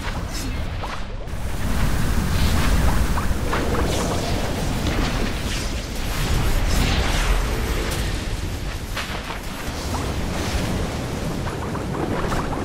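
Magic blasts crackle and boom in a fast fight.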